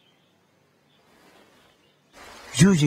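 A sheet of paper slides across a wooden table.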